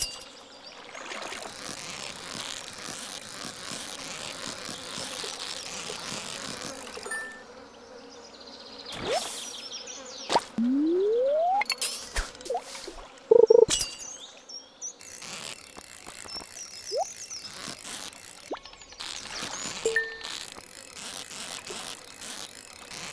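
A fishing reel whirs steadily while a fish is reeled in.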